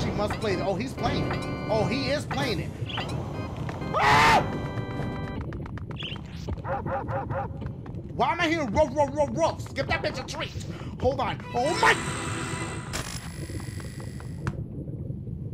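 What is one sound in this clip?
A young man shouts and exclaims excitedly into a close microphone.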